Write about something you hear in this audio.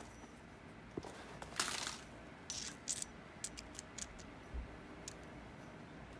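Pieces of hard stone click and tap lightly as hands handle them.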